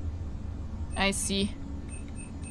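A short electronic beep sounds from a game menu.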